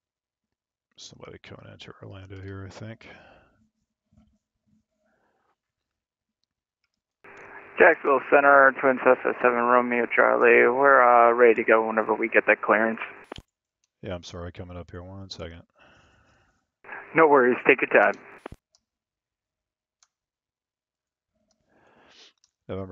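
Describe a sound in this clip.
A young man speaks calmly into a headset microphone.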